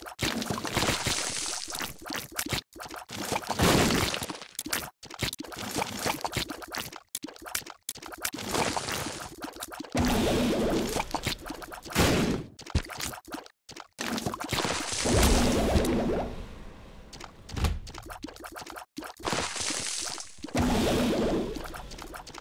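Small projectiles pop and splat rapidly in a video game.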